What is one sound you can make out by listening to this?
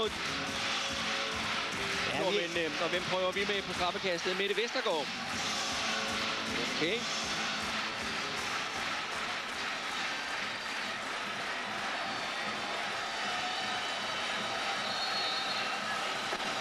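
A large crowd cheers and chants loudly in an echoing hall.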